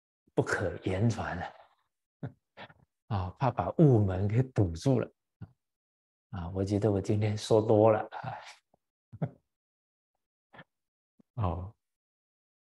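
An elderly man speaks calmly and warmly into a microphone.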